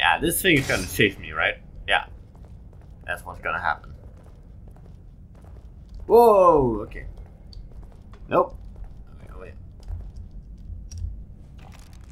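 Footsteps scuff slowly on a stone floor.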